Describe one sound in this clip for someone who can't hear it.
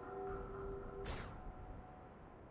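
A short whoosh sounds as the game changes scenes.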